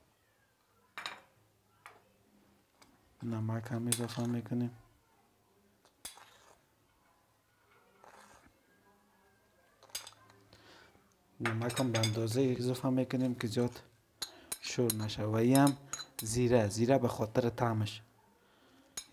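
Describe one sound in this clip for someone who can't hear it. A spoon taps against a ceramic bowl.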